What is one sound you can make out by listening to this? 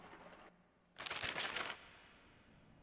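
A soft electronic whoosh sounds as a game map opens.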